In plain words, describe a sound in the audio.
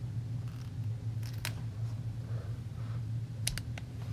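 A fingertip taps and presses on a plastic drawer.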